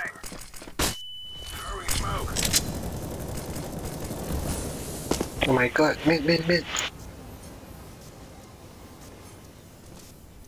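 A smoke grenade hisses loudly as it spreads.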